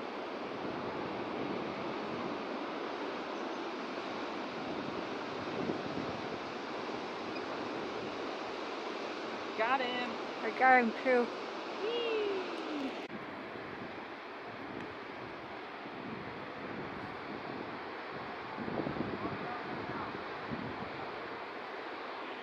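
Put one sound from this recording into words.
Big ocean waves crash and roar steadily.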